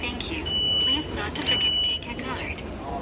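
A ticket machine beeps.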